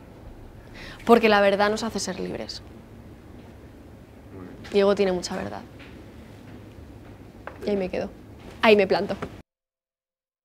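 A young woman speaks calmly into a nearby microphone, in short phrases with pauses.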